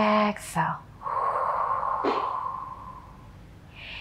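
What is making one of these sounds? A woman breathes out slowly and audibly.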